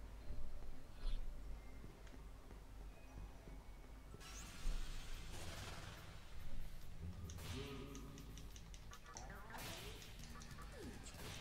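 Video game music plays.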